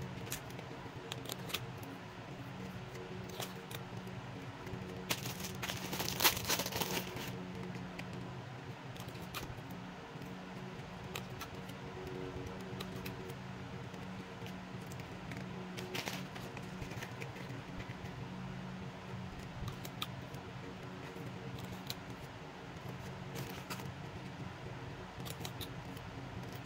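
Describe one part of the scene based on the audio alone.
Paper crinkles and rustles as it is handled close by.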